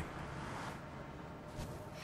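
A pickaxe chips at stone blocks.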